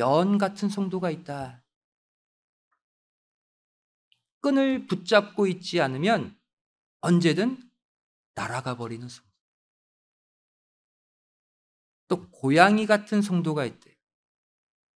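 A middle-aged man speaks with emphasis into a microphone, pausing between phrases.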